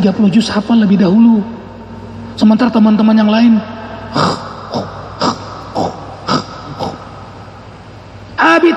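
A man speaks with animation into a microphone, heard through loudspeakers in an echoing hall.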